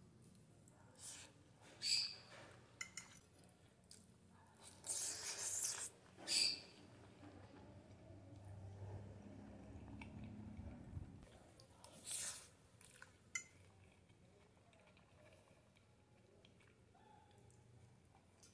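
A woman slurps and chews noodles close by.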